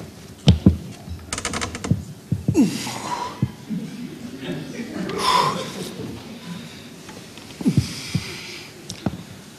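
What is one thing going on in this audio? A man speaks with animation in an echoing hall.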